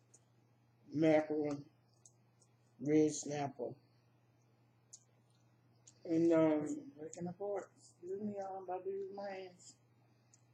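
A woman talks in short remarks, close to a microphone.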